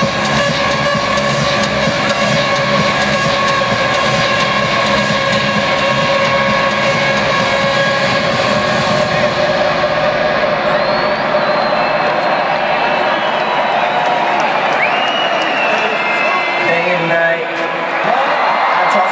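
A large crowd cheers and roars in a huge echoing arena.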